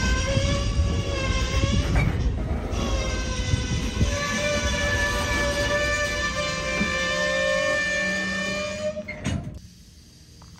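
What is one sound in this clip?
Train wheels squeal loudly against the rails.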